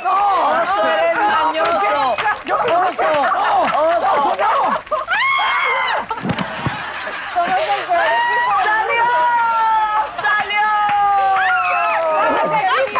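Women cheer and shout excitedly nearby.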